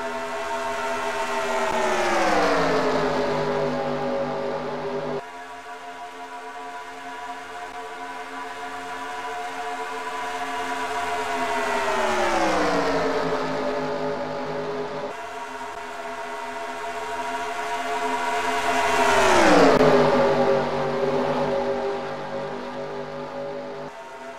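Race car engines roar loudly as cars speed past, the pitch dropping as each one goes by.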